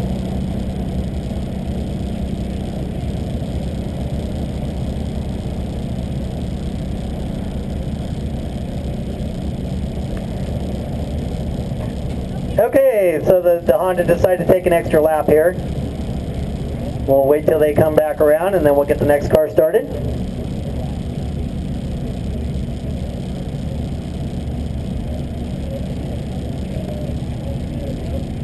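A car engine idles with a steady low hum close by.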